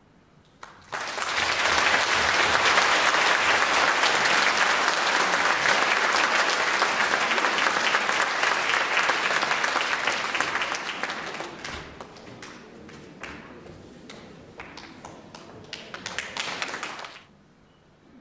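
An audience applauds loudly and then claps in scattered bursts.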